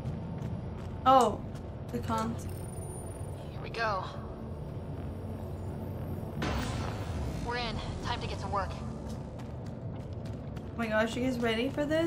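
A young woman speaks briefly and casually into a close microphone.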